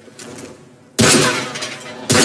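A pistol fires a loud shot.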